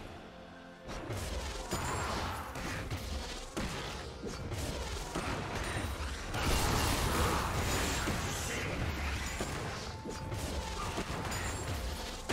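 Spell effects whoosh and crackle in a fast game fight.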